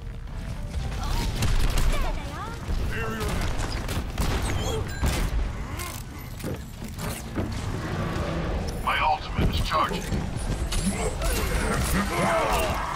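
A revolver fires sharp, loud shots in quick bursts.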